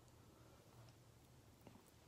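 A young woman chews food wetly close to a microphone.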